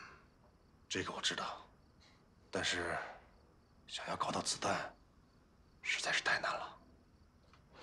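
A man speaks slowly in a low, troubled voice.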